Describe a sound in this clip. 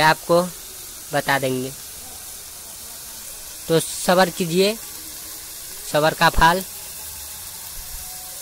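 A thick sauce bubbles and sizzles softly in a pan.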